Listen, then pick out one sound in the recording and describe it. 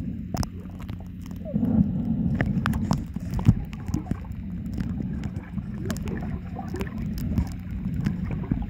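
Water bubbles and clicks softly underwater.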